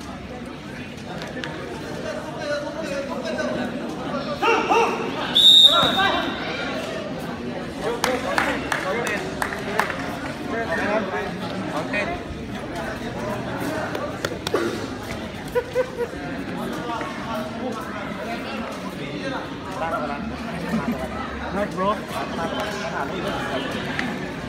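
A crowd of people chatter and call out in a large echoing hall.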